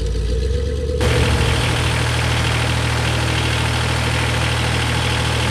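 A small loader's diesel engine roars close by as the loader drives out.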